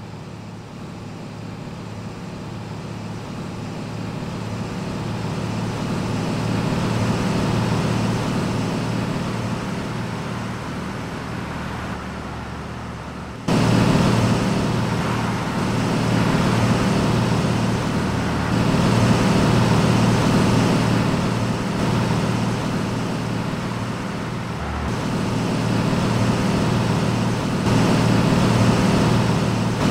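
A heavy truck's diesel engine drones steadily as it drives along a road.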